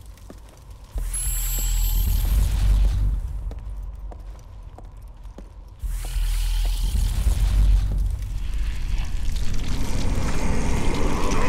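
A deep magical whoosh rumbles and roars.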